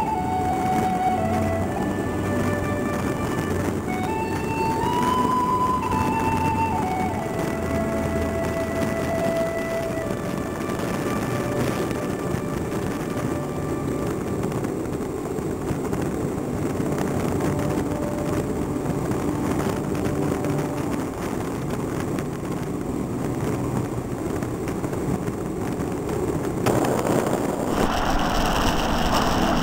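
Small race car engines drone and rev close by.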